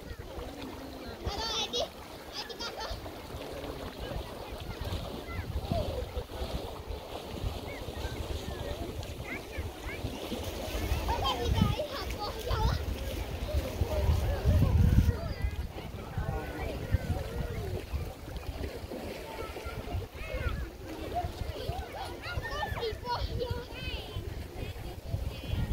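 Wind blows across the microphone in gusts.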